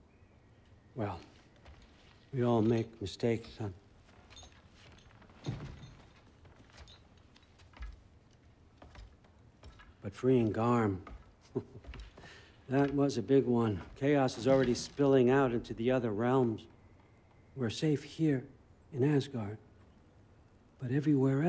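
An elderly man speaks calmly and warmly.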